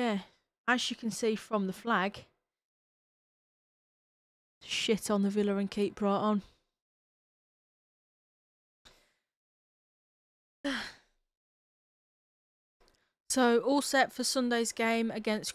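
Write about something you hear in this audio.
A woman talks with animation into a close microphone, heard as if over an online call.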